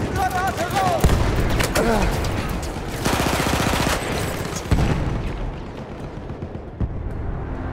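Gunshots crack and boom in short bursts.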